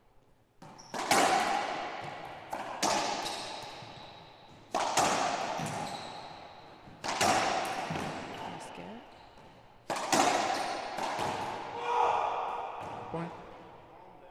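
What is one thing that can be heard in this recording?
A racquetball smacks loudly against the walls, echoing around a hard-walled court.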